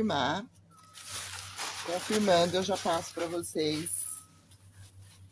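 Paper rustles and crinkles.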